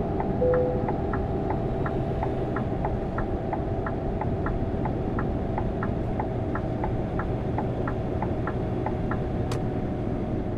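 A turn signal ticks in quick, even clicks.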